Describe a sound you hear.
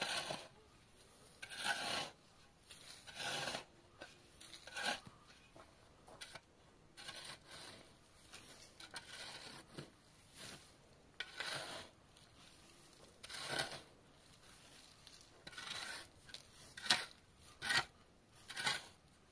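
A shovel scrapes and scoops gravel and sand in repeated bursts, outdoors.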